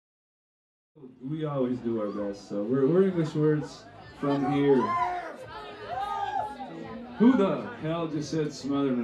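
An electric guitar is strummed through an amplifier.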